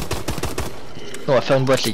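Gunshots crack in quick succession.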